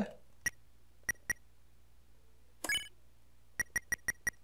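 Short electronic beeps sound as a game menu opens and moves.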